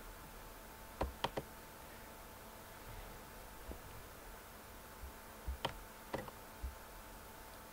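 Chess pieces click sharply as moves are made.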